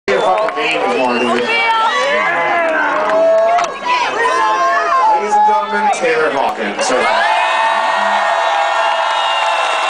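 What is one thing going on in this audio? A large crowd sings and cheers loudly outdoors.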